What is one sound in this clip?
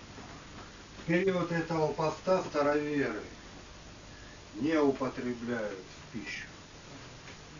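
A man reads aloud in a calm voice.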